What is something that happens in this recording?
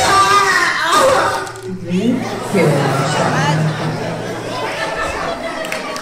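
A young man sings loudly through a microphone and loudspeakers in a large echoing hall.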